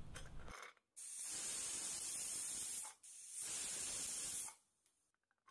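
Steam hisses loudly from a pressure cooker valve.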